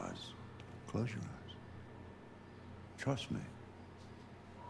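A young man speaks calmly and quietly.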